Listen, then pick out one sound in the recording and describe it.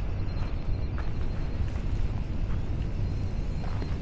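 Spaceships roar past overhead.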